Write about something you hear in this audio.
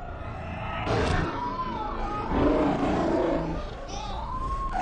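A creature lets out a loud, shrieking scream.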